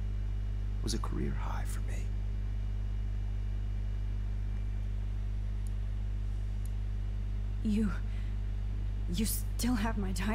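A man talks into a headset microphone.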